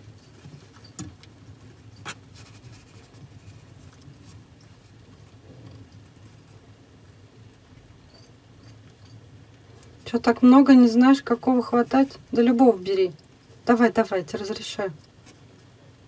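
A lizard crunches softly on mealworms.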